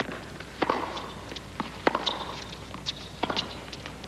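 Tennis shoes squeak on the court.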